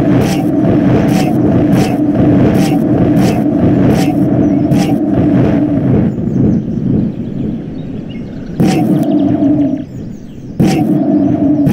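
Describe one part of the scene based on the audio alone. A magic wand fires crackling spell blasts.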